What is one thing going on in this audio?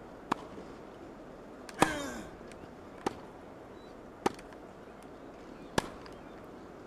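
A tennis ball bounces and is struck with sharp pops.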